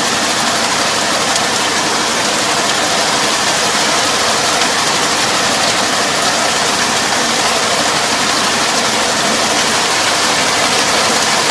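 A tractor engine runs steadily close by.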